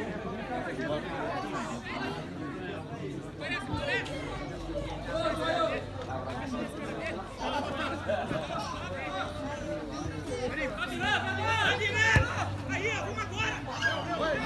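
Many young men shout and call out across an open field.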